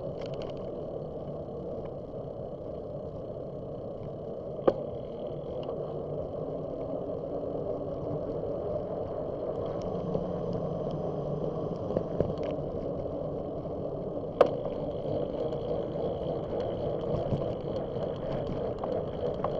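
Bicycle tyres roll steadily over a paved path.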